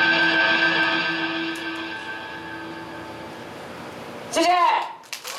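An electric guitar chord rings out through loud speakers and slowly fades.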